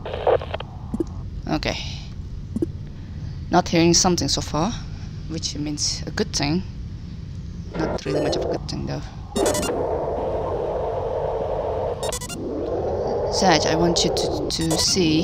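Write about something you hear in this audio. Short electronic blips and beeps sound.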